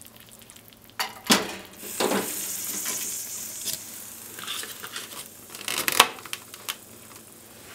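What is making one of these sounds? A plastic lid clicks and snaps onto a cup.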